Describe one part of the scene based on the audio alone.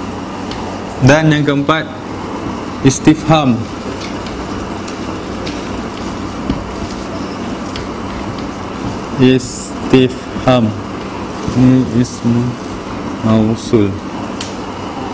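A man speaks calmly in short phrases.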